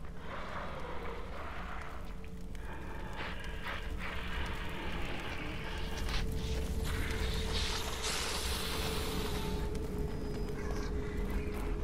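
Footsteps crunch softly on grass and gravel.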